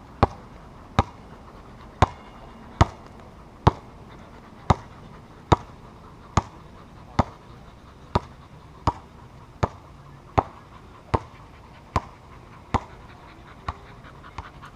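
A basketball bounces steadily on a hard outdoor court.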